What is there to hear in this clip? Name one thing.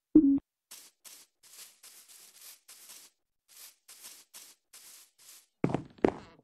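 Footsteps crunch softly on grass.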